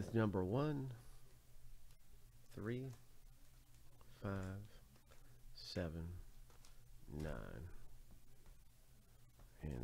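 Foil card packs crinkle as they are handled.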